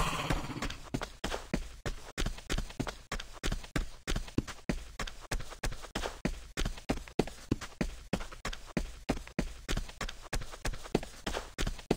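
Footsteps tap quickly and evenly.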